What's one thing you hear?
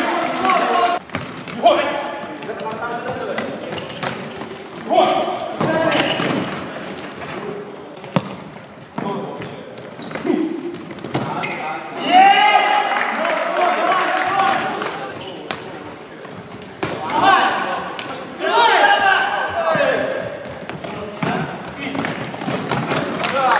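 A ball thumps off a player's foot in a large echoing hall.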